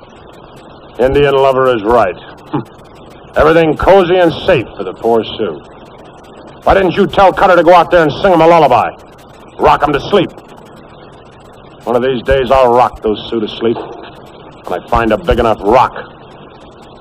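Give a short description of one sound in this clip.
A man speaks firmly at close range.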